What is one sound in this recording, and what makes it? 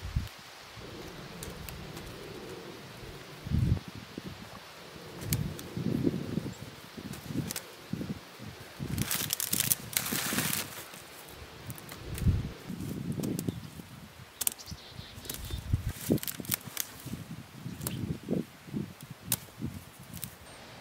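Potatoes thud softly into a crate.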